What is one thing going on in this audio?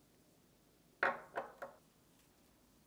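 A plate is set down on a table with a clatter.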